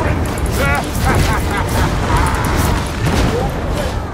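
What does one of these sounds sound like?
An explosion bursts with a fiery roar.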